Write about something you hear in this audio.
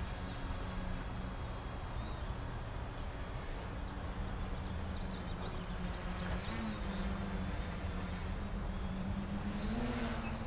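A drone's propellers buzz steadily, growing louder as it approaches overhead.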